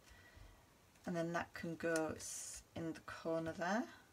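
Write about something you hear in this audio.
Paper rustles softly as it is handled.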